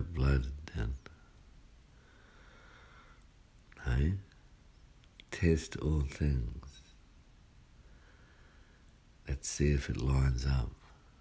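A man speaks calmly in short phrases close by, with long pauses.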